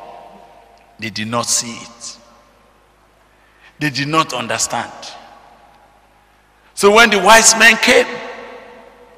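A man speaks with animation into a microphone over loudspeakers in a large echoing hall.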